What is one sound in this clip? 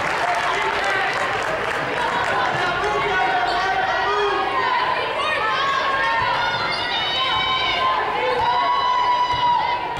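A basketball is dribbled on a hardwood floor.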